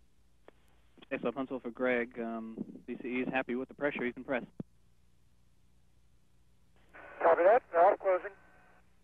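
A man speaks calmly through a headset microphone.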